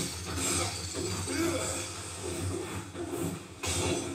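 A blade swooshes through the air.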